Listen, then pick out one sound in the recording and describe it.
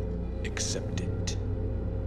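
A deep-voiced man speaks calmly and slowly.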